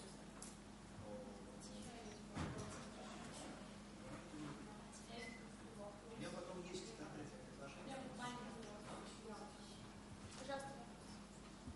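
A woman speaks quietly from across a large room.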